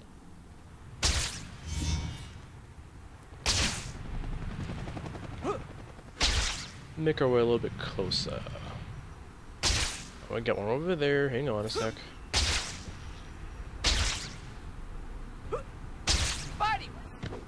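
A web shoots out with a sharp whoosh, again and again.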